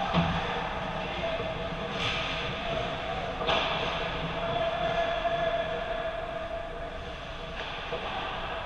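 Hockey sticks clack against the puck and ice.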